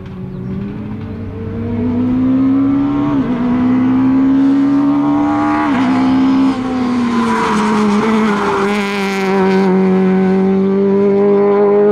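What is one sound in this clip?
A rally car engine revs hard and roars closer, shifting gears.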